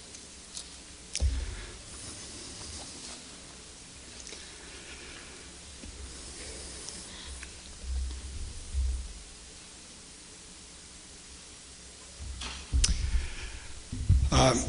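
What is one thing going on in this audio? An elderly man speaks into a microphone in a calm voice.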